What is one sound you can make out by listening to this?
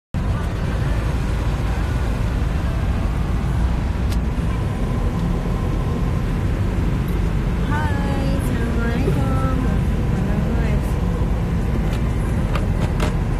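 A car engine and road noise rumble steadily from inside a moving car.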